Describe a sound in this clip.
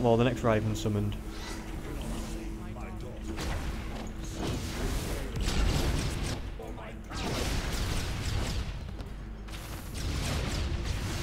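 Game combat effects whoosh and crackle with energy blasts.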